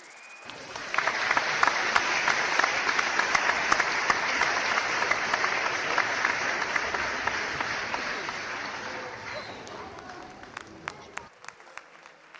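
A large crowd cheers and applauds loudly, then the applause slowly fades.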